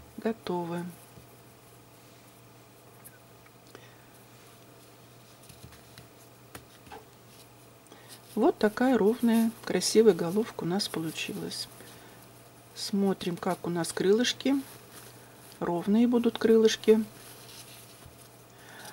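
Cloth rustles softly as it is handled.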